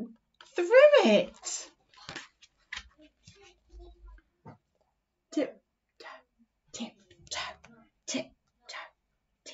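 A young woman reads aloud expressively, close to a microphone.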